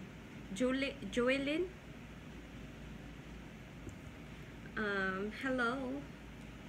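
A young woman talks calmly and close by, in short phrases with pauses.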